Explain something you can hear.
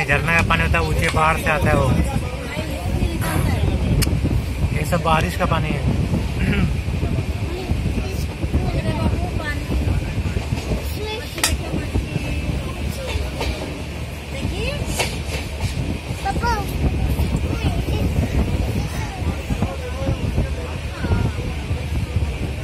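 Wind buffets loudly against the microphone outdoors.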